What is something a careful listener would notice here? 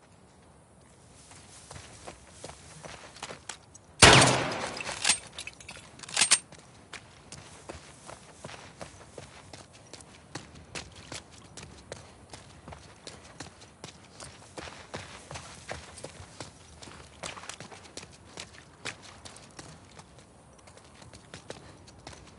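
Footsteps hurry over wet grass and pavement.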